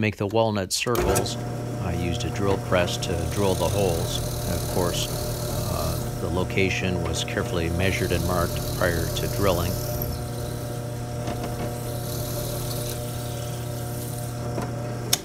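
A drill press hums steadily as it bores into a block.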